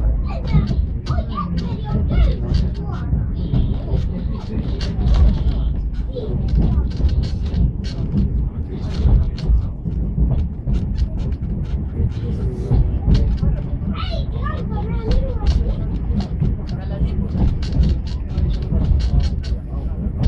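A train rumbles along the tracks with a steady low roar.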